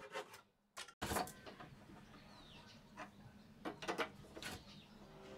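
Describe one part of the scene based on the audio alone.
Metal clamps click and creak as screws are tightened.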